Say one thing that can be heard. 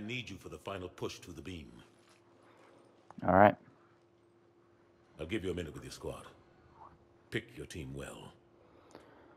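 A man speaks calmly in a deep voice, close by.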